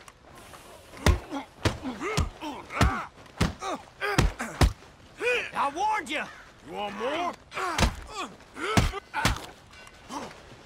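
Men grunt and groan as they fight.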